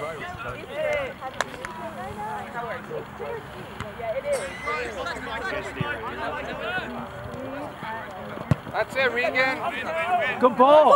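Players and spectators shout and call out across an open outdoor field.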